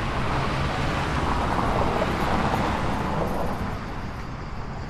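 A car drives past close by on a cobbled road, then fades away.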